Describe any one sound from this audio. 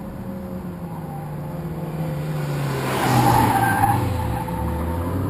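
A sports car engine roars as the car speeds past.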